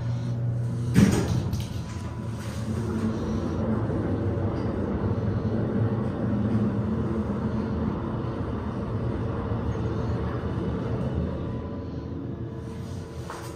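A hydraulic elevator car rumbles and hums as it travels.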